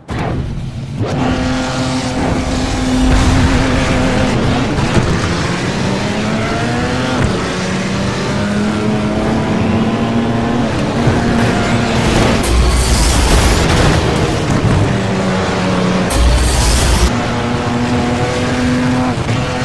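A car engine roars and revs up as it races.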